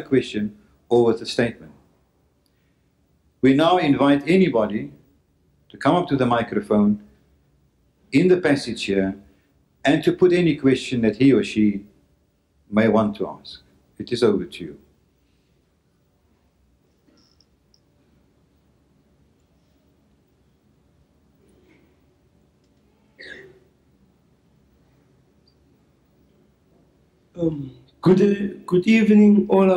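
A man speaks calmly and slowly into a microphone, heard through a loudspeaker.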